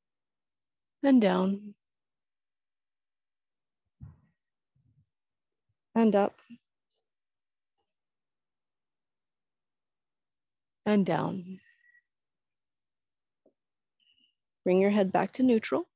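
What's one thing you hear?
A woman speaks calmly in short phrases, with long pauses between them.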